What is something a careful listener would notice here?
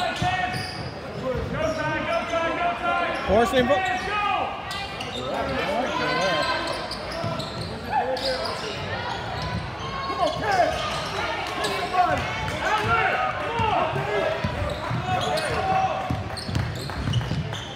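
A basketball thumps as it bounces on the floor.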